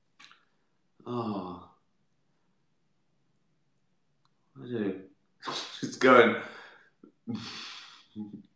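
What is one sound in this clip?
A middle-aged man talks casually into a close microphone, in short bursts with pauses.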